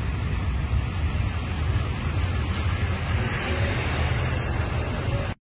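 A flag flaps and ripples in the wind.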